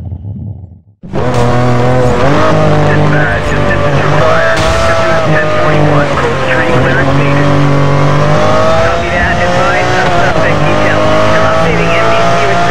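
A sports car engine roars at high speed, rising and falling in pitch as it shifts gears.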